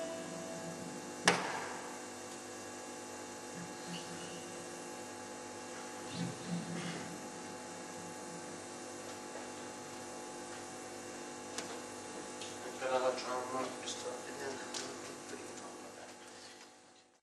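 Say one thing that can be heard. An amplifier hums steadily.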